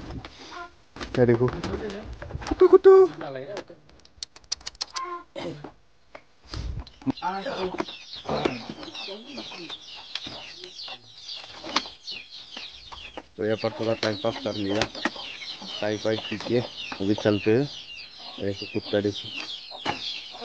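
A young man talks casually close to the microphone.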